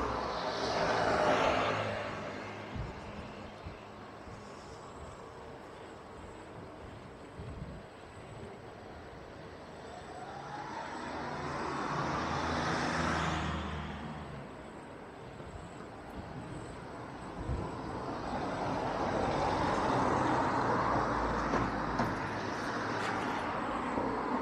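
Cars pass by close on the street, their noise swelling and fading.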